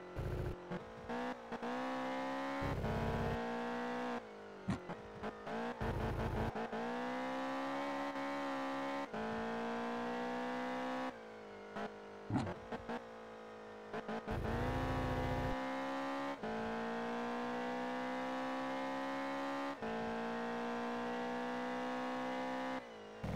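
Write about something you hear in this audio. A car engine revs high, rising in pitch and dropping briefly as gears shift.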